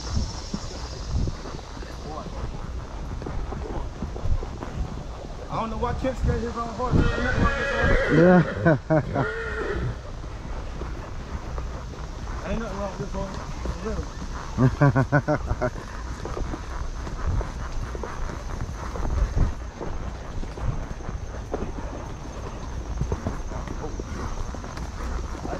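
Horses' hooves thud softly on a dirt trail.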